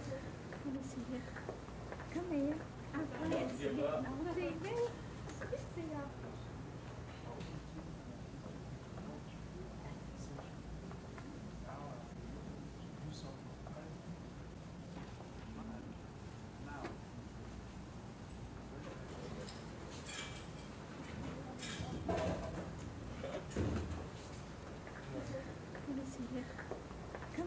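A man talks calmly in a small group close by.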